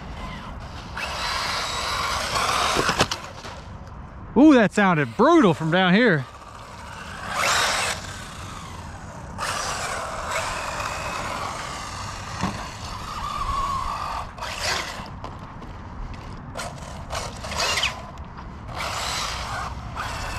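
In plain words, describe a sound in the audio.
A small remote-control car's electric motor whines and revs up and down in bursts.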